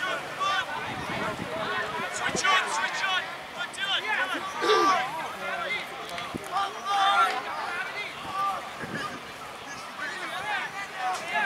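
Young men shout and call out across an open field.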